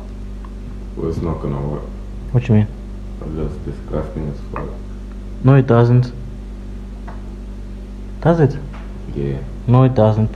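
A young man talks calmly nearby.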